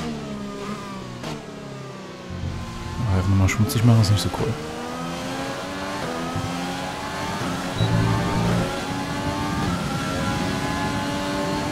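A racing car engine revs high and shifts up through the gears as the car accelerates.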